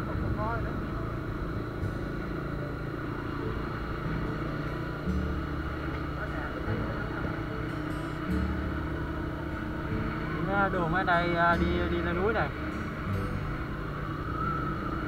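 A motor scooter engine hums steadily as it rides along.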